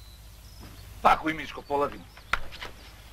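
A man speaks in a firm voice.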